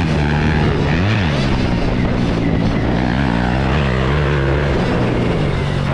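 A dirt bike engine roars close by, revving up and down as it rides.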